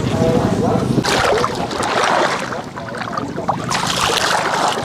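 Water splashes and sloshes as a person wades through mud.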